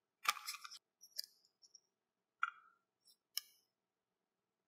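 A film cartridge rattles and clicks in hands.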